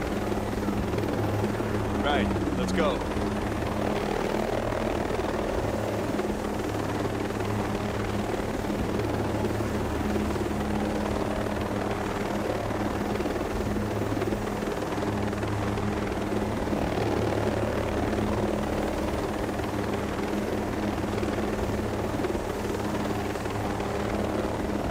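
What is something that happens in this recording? Helicopter rotors thump steadily and loudly.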